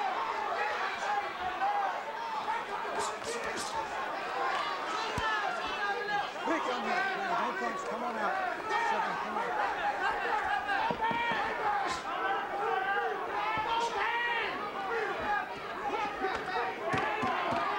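Boxing gloves thud against bodies in quick blows.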